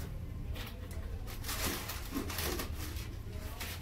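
Small plastic items clatter and rustle in a tray.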